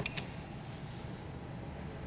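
A keypad beeps once.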